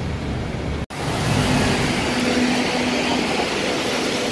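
A double-decker bus engine hums as the bus drives past close by.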